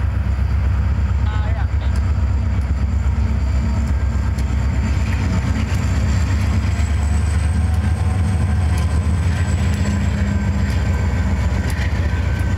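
Heavy diesel locomotives rumble past close by.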